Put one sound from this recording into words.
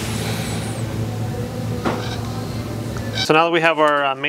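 A ratchet wrench clicks as a bolt is tightened.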